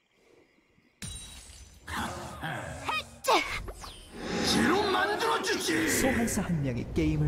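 Magic spells whoosh, crackle and burst in a video game fight.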